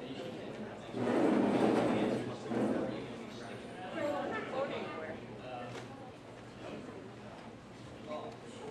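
A man speaks through a loudspeaker in a large echoing hall.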